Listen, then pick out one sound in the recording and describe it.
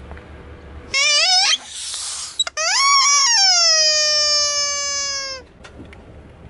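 A rubber toy squeals loudly as a car tyre squashes it.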